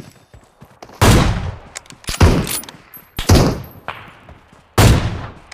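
Loud rifle shots boom and echo, several times.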